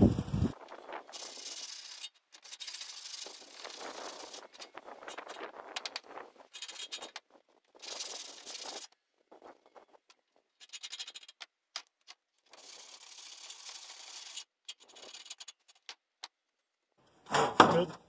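A sanding block scrapes back and forth in short strokes.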